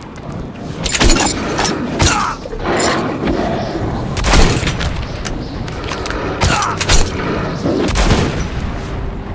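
A shotgun blasts several times.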